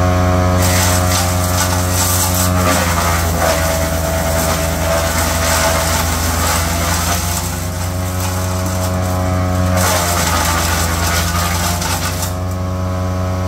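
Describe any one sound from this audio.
A wood chipper grinds and crunches through branches, with bursts that come and go.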